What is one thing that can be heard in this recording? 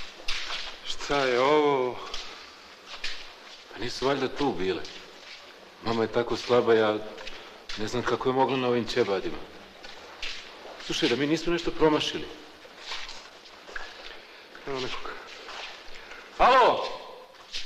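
A man speaks in a low, tense voice in an echoing room.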